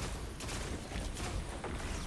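A shotgun booms.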